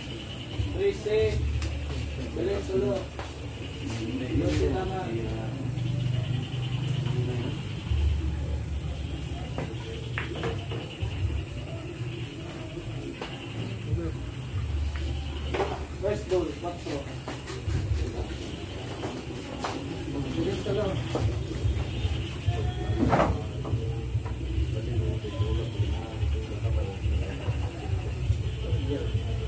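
Men chat casually nearby.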